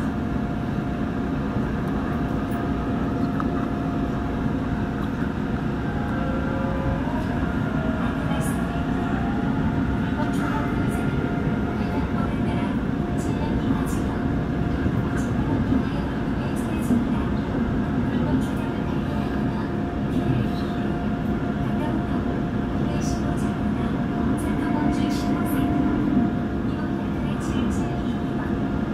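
An electric commuter train rumbles along the track at speed, heard from inside the carriage.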